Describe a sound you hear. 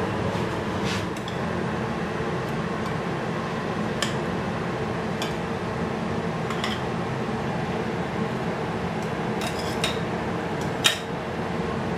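Metal tongs click against a plate.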